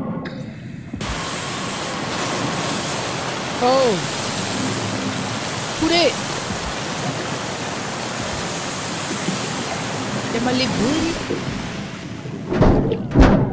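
Water rushes and bubbles steadily.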